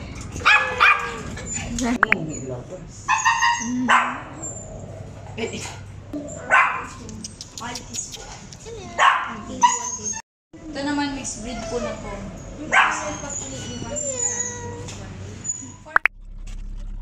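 Small dogs bark and yap excitedly up close.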